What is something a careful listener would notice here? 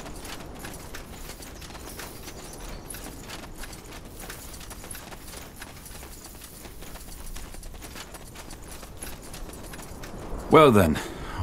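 Footsteps crunch softly on dirt.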